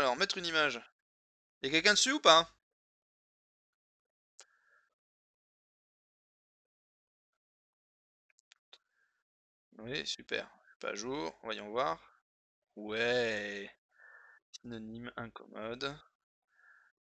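A man talks calmly and close into a microphone, with pauses.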